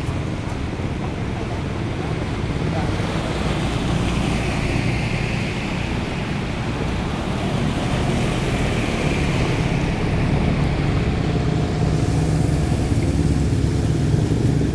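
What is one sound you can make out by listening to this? Water splashes and sprays under motorbike wheels.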